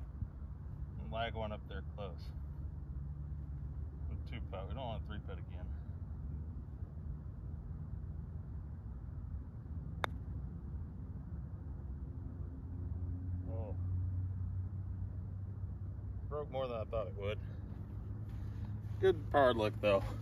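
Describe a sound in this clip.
Wind rumbles softly outdoors.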